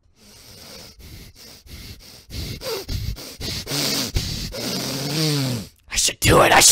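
A young man talks close to a microphone, amused.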